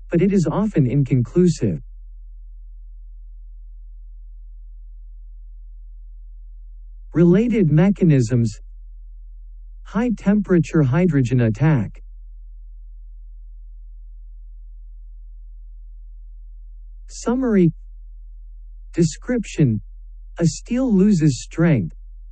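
A man narrates calmly into a close microphone, with pauses between phrases.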